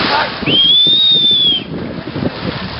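Water splashes as a boy dives into a river.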